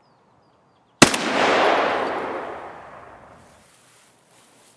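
A rifle fires a single loud shot that echoes and rolls away slowly.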